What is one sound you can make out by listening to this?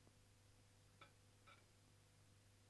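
Metal pots clank together as they are moved.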